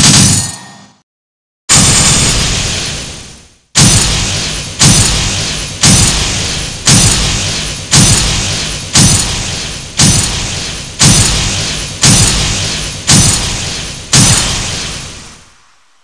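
Game effects crash and burst in quick repeated blasts.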